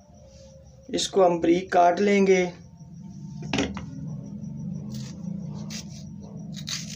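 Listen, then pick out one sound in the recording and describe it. A knife cuts through an onion.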